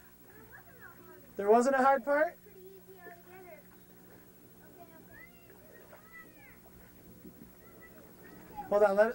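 Water splashes around a child's legs as the child wades.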